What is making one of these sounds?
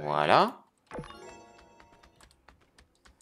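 A bright chime jingles.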